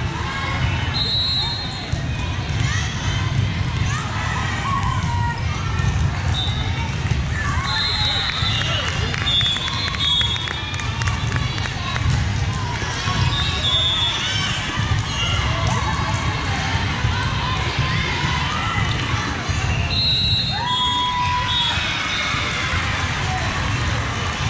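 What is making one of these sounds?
A volleyball thumps as players hit it.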